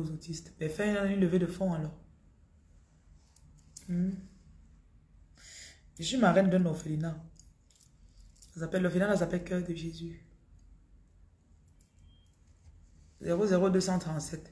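A woman speaks calmly and close to a microphone, in short phrases with pauses.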